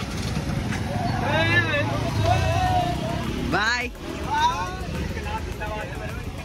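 Young men whoop and shout loudly outdoors.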